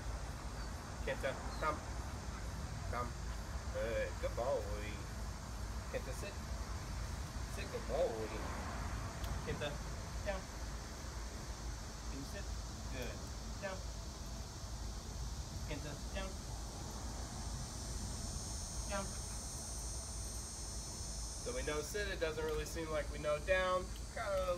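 A man speaks calmly to a dog nearby.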